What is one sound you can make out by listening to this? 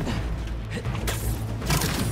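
A magic blast bursts with a loud crackle.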